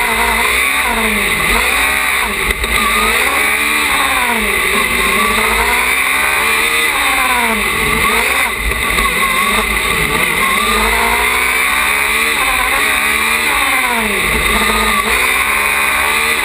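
A race car engine revs up and down hard, whining close by.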